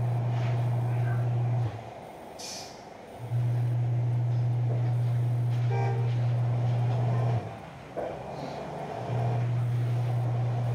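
A bus engine drones low and steady, cutting out briefly now and then.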